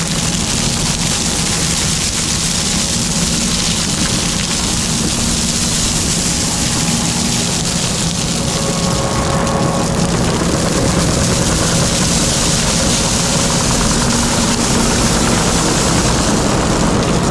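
Gravel pours and rattles out of a loader bucket.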